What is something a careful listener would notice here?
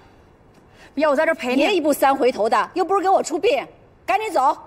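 A young woman speaks anxiously and quickly, close by.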